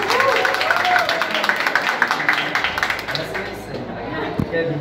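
A small crowd applauds with brisk clapping.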